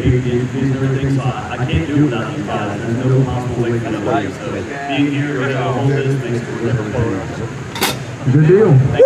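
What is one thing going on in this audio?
A young man answers questions calmly into a microphone.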